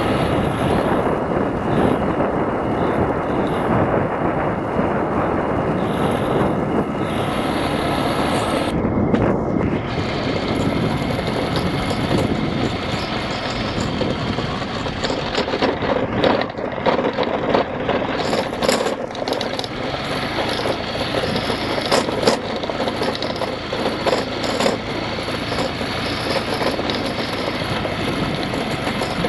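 A 150cc scooter engine drones while riding at a steady speed.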